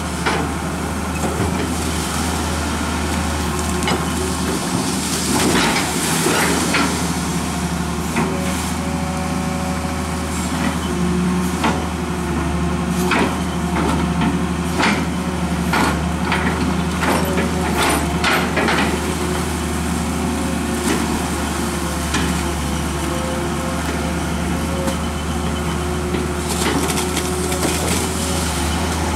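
A diesel excavator engine hums steadily.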